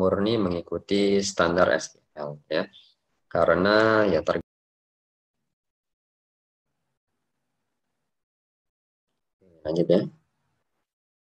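A young man speaks calmly through an online call microphone.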